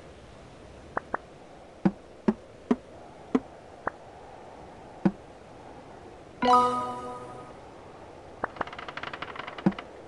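Short game pops and clicks sound as pieces are tapped.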